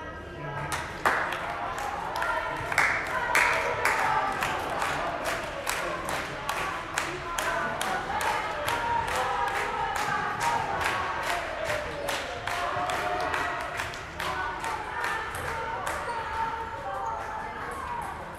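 A ping-pong ball clicks quickly back and forth off paddles and a table in a large echoing hall.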